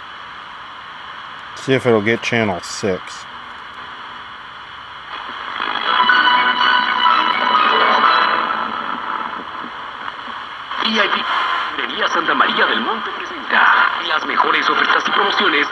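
A radio loudspeaker hisses with static.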